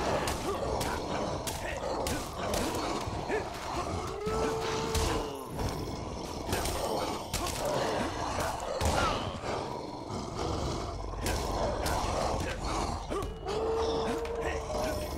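Swords clash and slash repeatedly.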